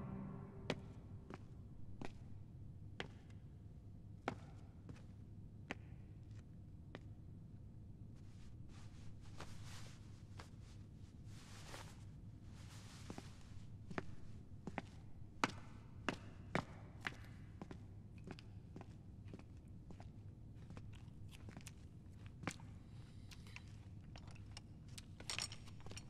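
Footsteps of a man walk on hard stone floors and stairs, echoing in a large hall.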